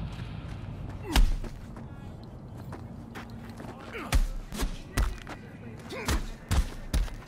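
A man grunts with effort during a fight.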